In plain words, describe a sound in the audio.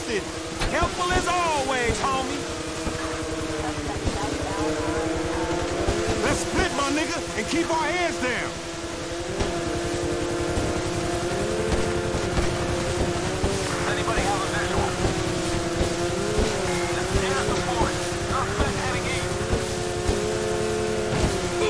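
A jet ski engine drones and revs at speed.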